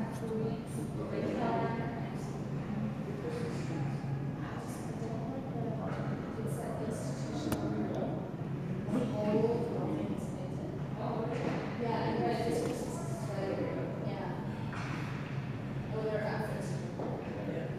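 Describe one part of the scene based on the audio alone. Spectators chatter nearby in a large echoing rink.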